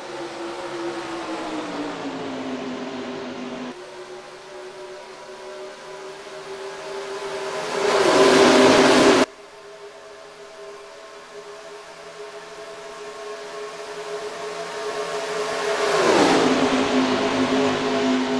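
Race car engines roar steadily.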